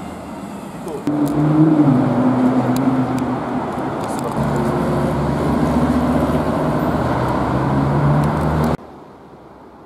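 A sports car engine roars loudly as the car drives past.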